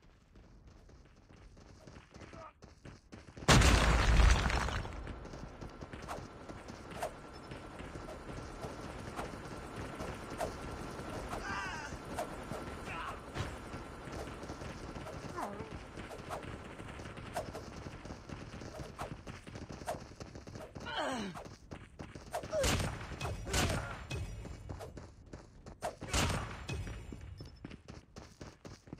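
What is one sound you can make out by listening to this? Footsteps run over sandy ground.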